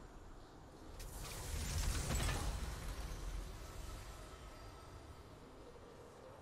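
A triumphant fanfare swells up and then fades away.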